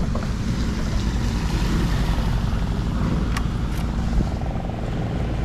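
A motorcycle engine idles with a steady low rumble close by.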